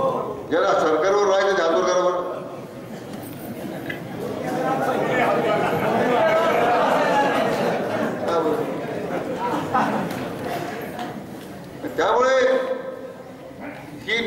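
A middle-aged man speaks forcefully through a microphone and loudspeakers, echoing outdoors.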